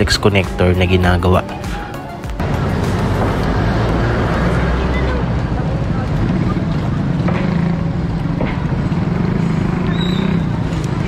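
Other motorbikes pass by nearby.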